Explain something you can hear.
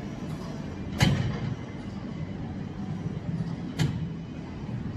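A weight machine clunks as its weight stack settles.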